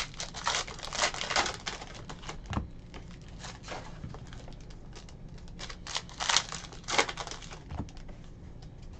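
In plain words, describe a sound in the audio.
Plastic wrappers crinkle and rustle as packs are torn open.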